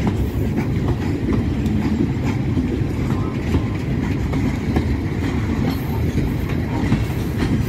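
A long freight train rumbles past close by.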